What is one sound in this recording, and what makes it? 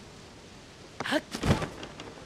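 A quick whoosh sounds.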